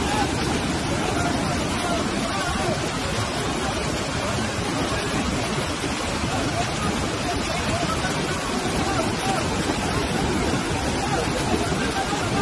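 A rushing river roars loudly over rocks.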